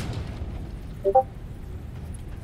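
A short electronic chime sounds as a building piece snaps into place.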